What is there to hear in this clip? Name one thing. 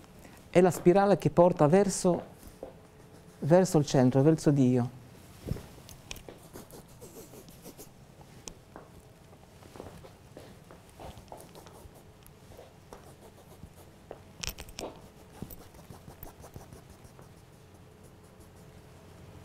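A marker squeaks and scratches on a board.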